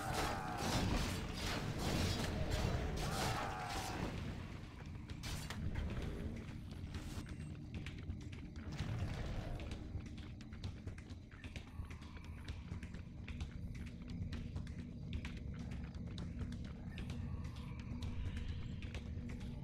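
Weapons clash and spells crackle in a game battle.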